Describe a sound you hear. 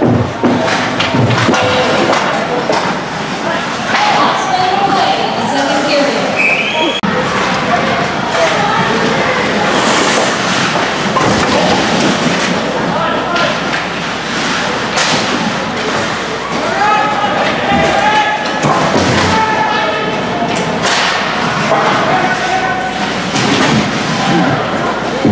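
Hockey sticks clack against the puck and against each other.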